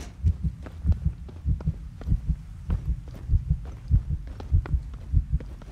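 Heavy footsteps thud quickly and steadily on hard stairs.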